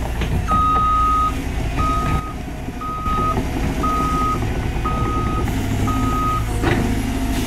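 An excavator's warning alarm beeps at an even pace.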